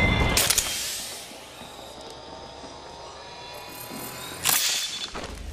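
A syringe hisses as it is injected.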